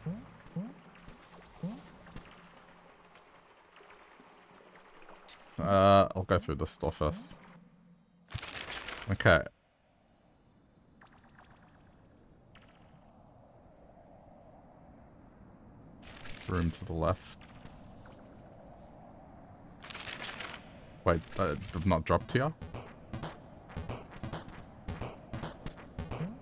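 Short electronic game sound effects blip and chime now and then.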